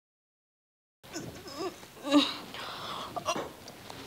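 A young woman groans and gasps.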